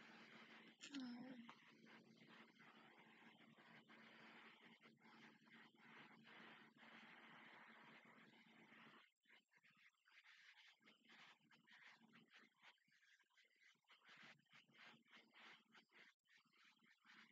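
A young woman speaks quietly into a headset microphone.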